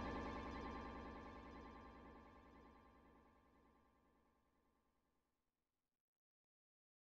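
Electronic synthesizer music plays and slowly fades out.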